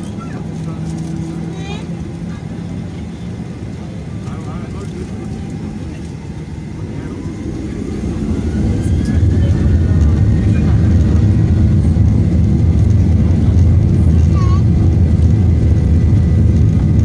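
Wheels rumble over a runway.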